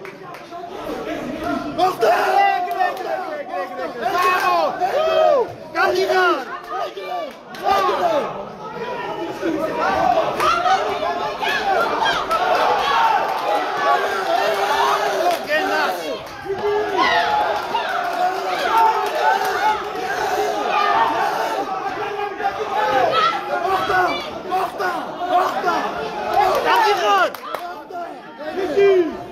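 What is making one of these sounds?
A crowd of men shouts and cheers loudly in a large echoing hall.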